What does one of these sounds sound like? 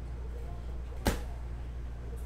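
A plastic card case clicks sharply in hands.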